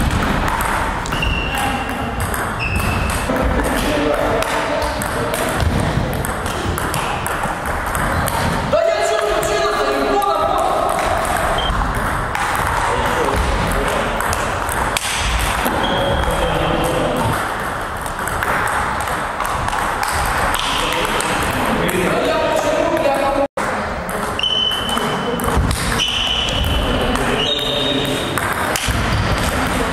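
Table tennis balls click back and forth on paddles and tables in an echoing hall.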